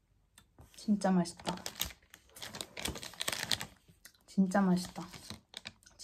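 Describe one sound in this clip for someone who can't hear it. Foil wrapper crinkles.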